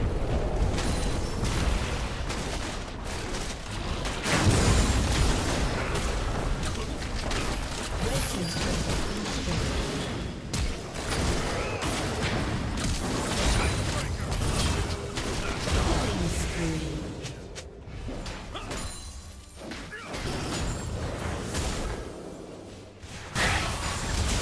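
Game spells blast and crackle in a fight.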